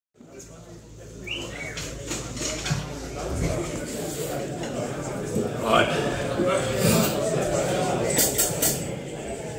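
Drums and cymbals pound along.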